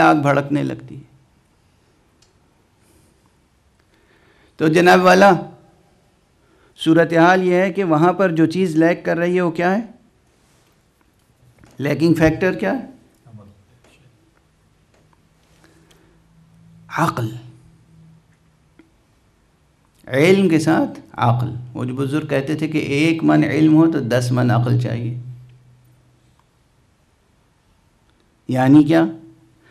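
A middle-aged man speaks slowly and gravely into a microphone, in short phrases with long pauses.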